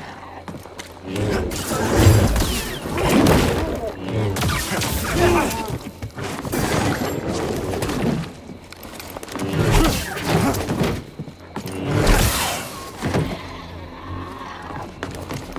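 A glowing blade hums and whooshes through the air in quick swings.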